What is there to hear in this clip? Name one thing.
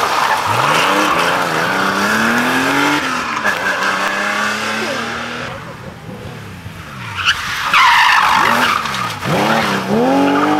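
A rally car engine revs hard and rises in pitch through its gears as it races past.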